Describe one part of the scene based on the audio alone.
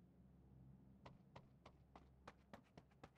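Footsteps tap on stairs.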